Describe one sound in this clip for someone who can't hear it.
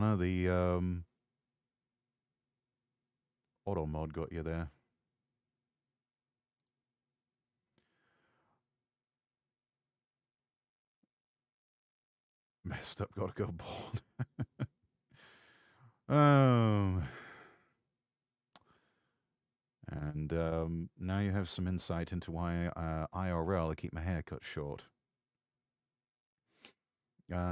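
A young man talks with animation into a microphone, in bursts with pauses.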